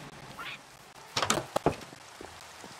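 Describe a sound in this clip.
A wooden door creaks open.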